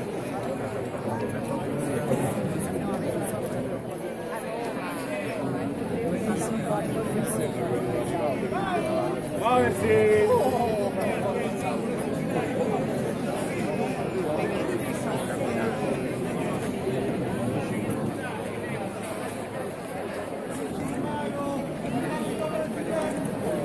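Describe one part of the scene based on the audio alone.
A large crowd chatters and murmurs all around, close by, outdoors.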